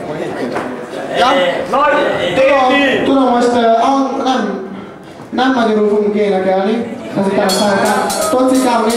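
A woman sings loudly into a microphone through a loudspeaker.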